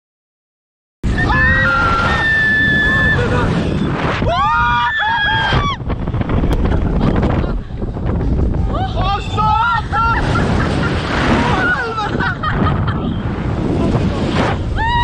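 A young man shouts in fright up close.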